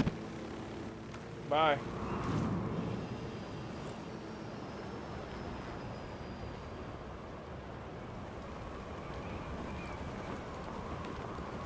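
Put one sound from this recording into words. Wind rushes steadily past a skydiver in free fall.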